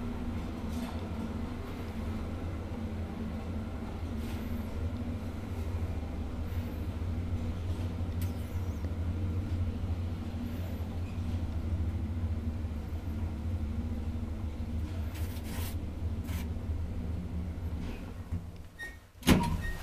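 A lift motor hums low and steady.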